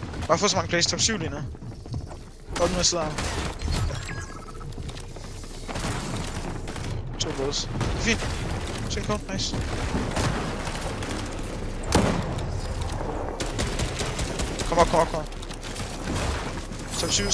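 Wooden walls and ramps snap into place with quick, hollow knocks.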